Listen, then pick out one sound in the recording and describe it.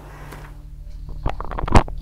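A menu clicks sharply several times.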